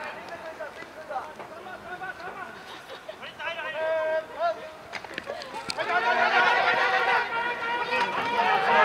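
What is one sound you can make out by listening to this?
Young men shout and call out close by outdoors.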